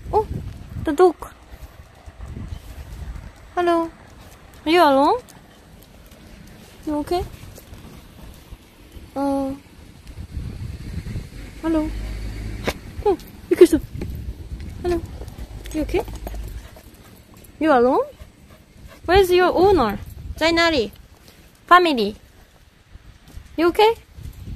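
A small dog whines and yelps in short high cries, close by.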